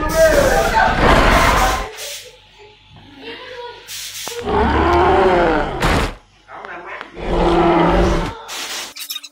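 A woman laughs loudly close by.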